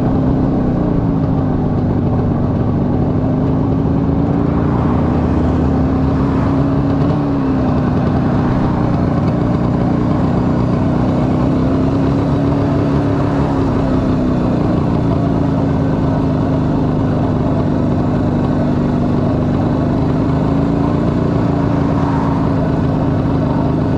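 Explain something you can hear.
A motorcycle engine rumbles steadily close by, its pitch rising and falling with the throttle.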